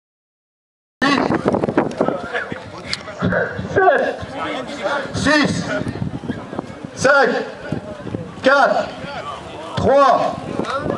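A crowd of men and women chatter outdoors.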